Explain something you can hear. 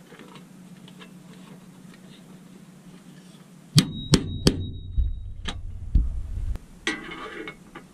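A screwdriver turns a screw with faint scraping.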